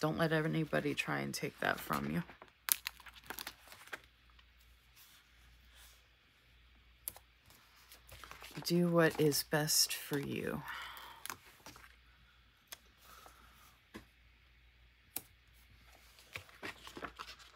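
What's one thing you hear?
A plastic sticker sheet crinkles and rustles close by.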